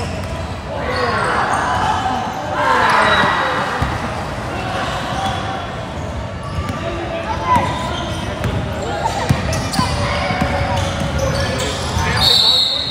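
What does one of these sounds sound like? Children shout and call out across a large echoing gym.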